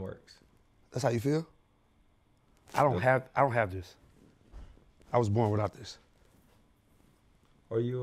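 A young man speaks casually in short phrases, close to a microphone.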